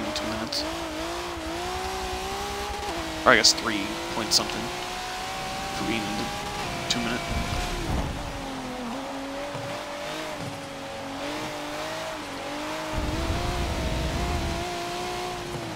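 A racing car engine drones steadily, rising and falling in pitch as the gears change.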